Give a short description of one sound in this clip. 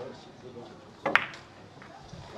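Billiard balls knock together with loud clicks.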